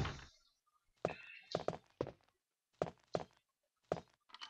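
Footsteps thud on a wooden floor at a steady walk.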